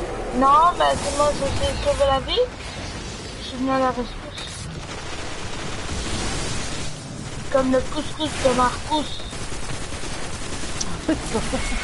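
Guns fire in rapid bursts with loud blasts.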